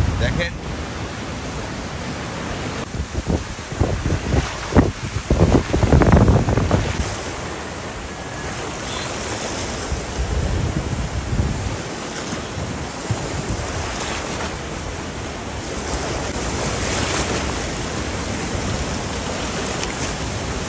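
Floodwater rushes and roars loudly.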